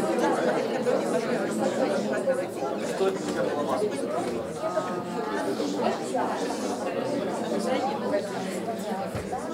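A man speaks clearly in an echoing room.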